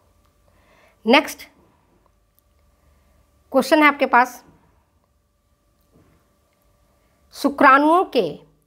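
A middle-aged woman speaks calmly and clearly into a close microphone, in short phrases with pauses.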